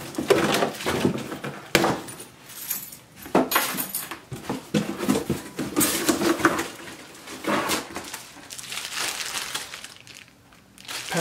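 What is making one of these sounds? Cardboard flaps rustle and scrape as hands rummage in a box.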